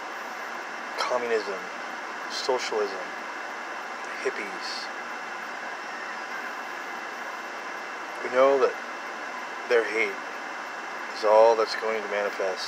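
A man speaks calmly and haltingly, close to the microphone.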